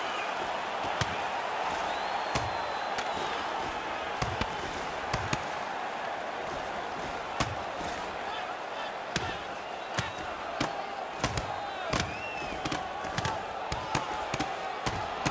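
Hockey sticks clack against the puck and each other.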